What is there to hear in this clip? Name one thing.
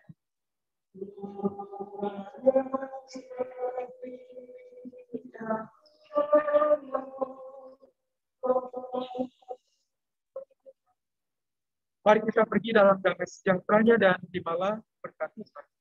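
An elderly man reads aloud calmly in a large echoing hall.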